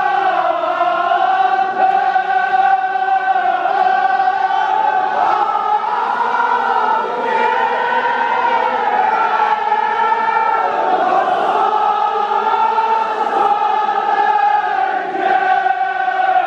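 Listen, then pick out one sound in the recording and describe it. A crowd of men chants loudly together in a steady, drawn-out tone.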